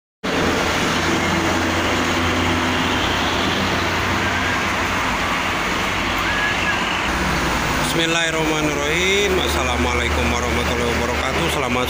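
Steady traffic roars past at speed on a busy highway.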